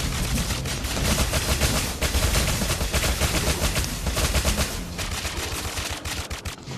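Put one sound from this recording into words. Heavy thumping hits land over and over.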